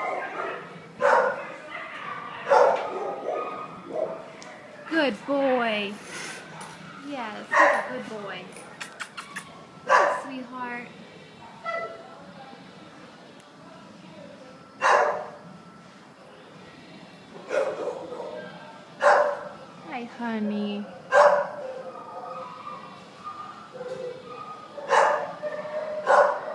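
A large dog barks in an echoing kennel.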